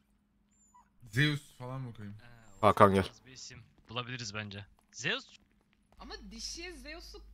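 A man talks with animation over an online voice chat.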